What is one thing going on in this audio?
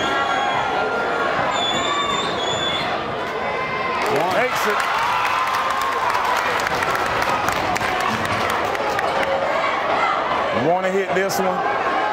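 A large indoor crowd chatters and cheers in an echoing gym.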